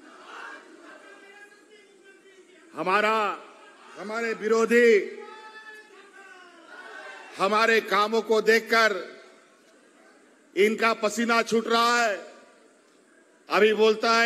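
A middle-aged man speaks forcefully into a microphone in bursts, heard through loudspeakers with echo.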